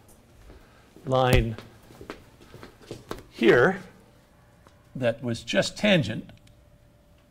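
A man speaks in a lecturing tone.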